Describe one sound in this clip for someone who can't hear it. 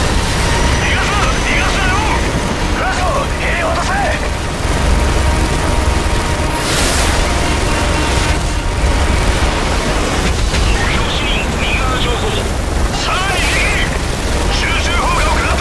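A helicopter door minigun fires in long, rapid bursts.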